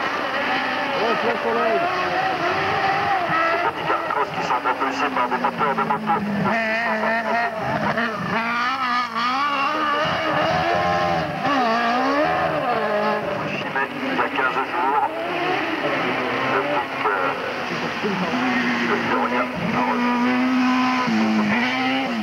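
A race car engine roars and revs up and down through gear changes close by.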